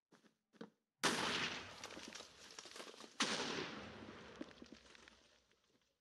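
A fire charge whooshes out with a burst of flame.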